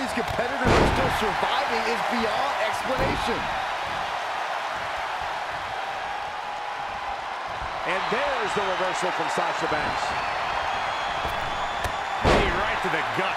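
A heavy body thuds onto a wrestling ring mat.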